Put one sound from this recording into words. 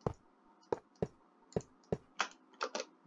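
Blocks thud softly into place, one after another.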